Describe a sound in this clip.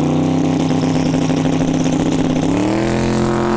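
A race car engine idles with a deep rumble.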